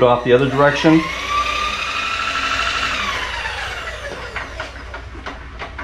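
An electric motor whines, rising and then falling in pitch as a machine table travels.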